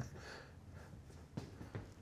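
An older man laughs nearby.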